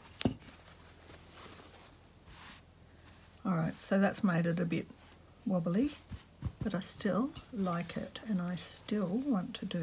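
Fabric rustles as hands smooth and fold it.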